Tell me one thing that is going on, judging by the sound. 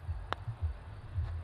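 A putter taps a golf ball.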